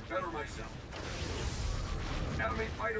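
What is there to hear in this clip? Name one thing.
A large explosion booms and rumbles.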